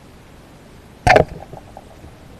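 A speargun fires underwater with a sharp thud.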